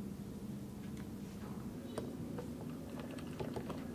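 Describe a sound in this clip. Milk pours into glasses.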